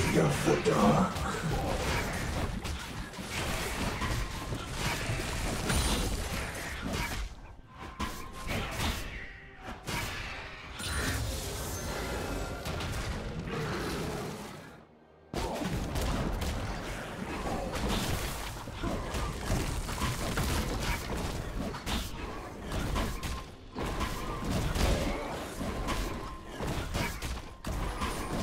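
Weapons clash and strike repeatedly in a fast fight.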